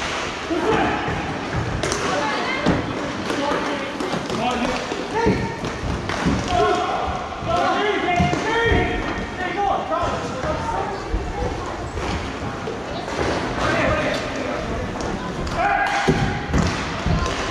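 Hockey sticks clack against a ball and the boards.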